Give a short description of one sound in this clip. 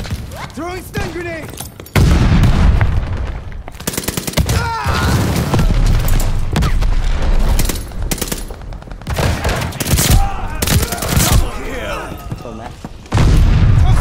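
Gunshots ring out in rapid bursts.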